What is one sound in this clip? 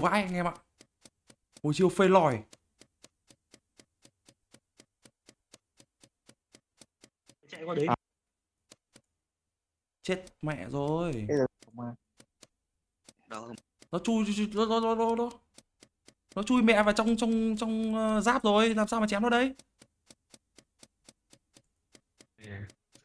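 A young man talks with animation into a microphone, in short bursts.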